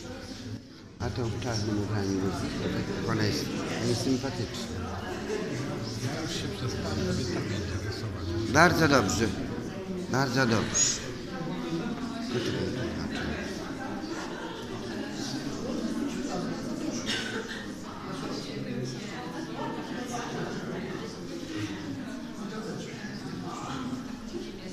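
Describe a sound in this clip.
Men and women murmur and talk quietly in a room with a slight echo.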